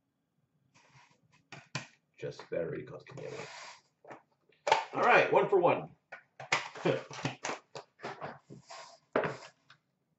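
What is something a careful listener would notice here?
Cards rustle and tap as they are handled.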